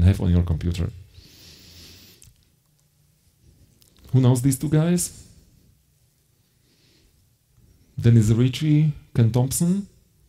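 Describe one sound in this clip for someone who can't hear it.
A middle-aged man speaks calmly into a microphone in pauses, heard through loudspeakers in a large hall.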